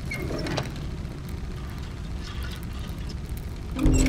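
A small metal hatch slides shut with a clank.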